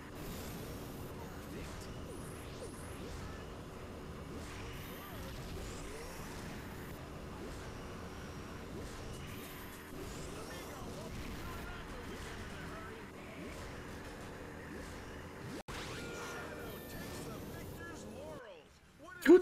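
A hover bike engine whines steadily as it races along.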